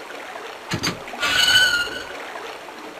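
A metal gate creaks as it swings open.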